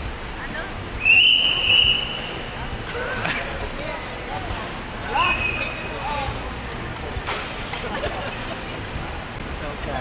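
Several adults talk and laugh together in a large echoing hall.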